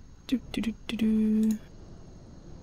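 A short electronic interface tone beeps.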